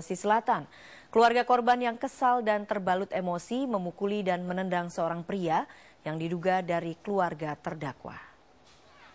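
A woman reads out the news calmly and clearly into a microphone.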